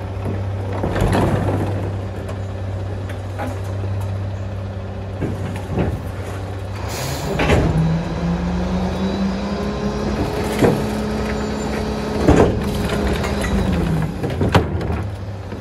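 A plastic bin bangs against metal.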